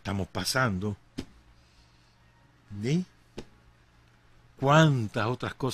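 A middle-aged man speaks with animation into a close microphone, in short bursts with pauses.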